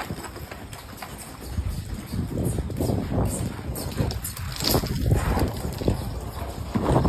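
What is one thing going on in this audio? Horse hooves thud quickly on soft dirt.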